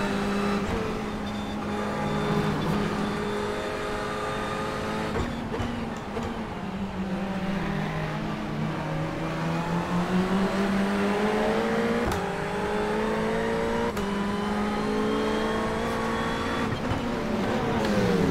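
A racing car engine roars, its pitch rising and dropping with gear changes.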